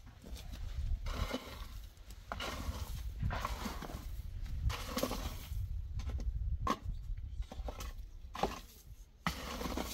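A rake scrapes and scratches across dry dirt.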